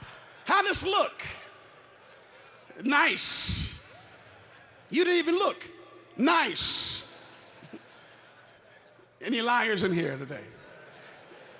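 A man speaks in short, measured phrases through loudspeakers in a large echoing hall.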